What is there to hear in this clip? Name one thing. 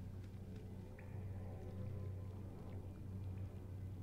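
A magical spell shimmers and sparkles.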